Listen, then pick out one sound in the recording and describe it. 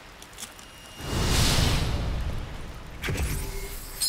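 A magical blast bursts with a loud rushing whoosh.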